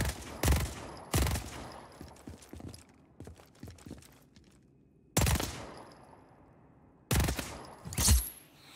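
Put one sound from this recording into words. A gun fires loud shots that echo.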